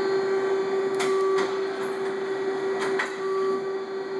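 A CNC tool turret clunks as it indexes.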